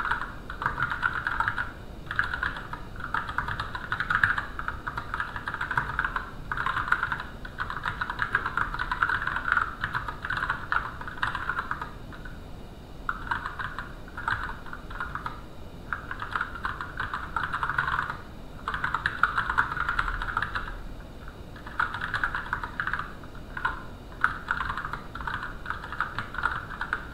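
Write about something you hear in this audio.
Keyboard keys click rapidly in bursts of typing, close by.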